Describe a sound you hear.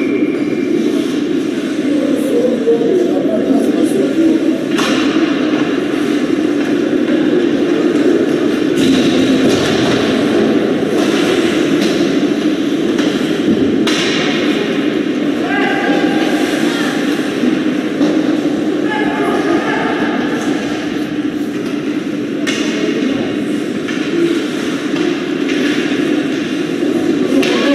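Spectators murmur and chatter nearby.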